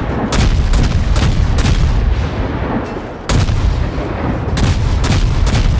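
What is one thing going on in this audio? Naval guns fire in repeated booming blasts.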